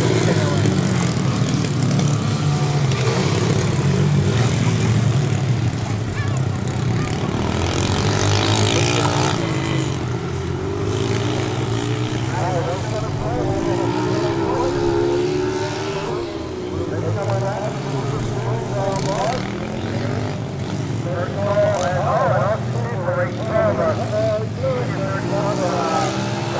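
Small dirt bike engines buzz and rev as they race around outdoors.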